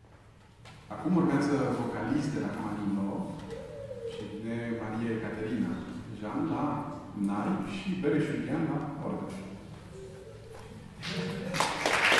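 A man speaks calmly into a microphone in a large echoing hall.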